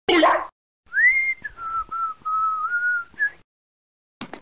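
A cartoon dog howls with a long, wavering cry.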